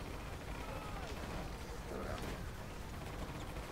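Explosions boom and fire crackles.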